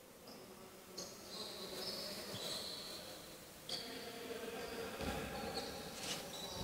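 Sneakers squeak on a wooden court in an echoing hall.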